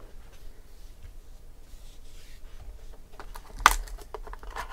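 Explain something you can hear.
A cardboard box slides and scrapes.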